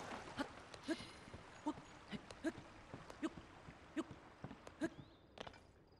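Hands and feet knock steadily on a wooden ladder during a climb.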